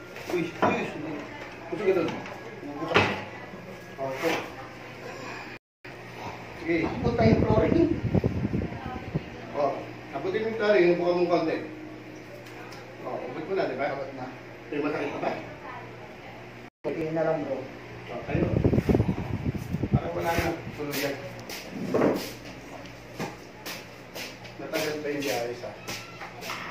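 Men talk close by in a room.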